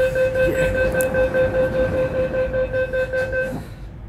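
Train doors slide shut.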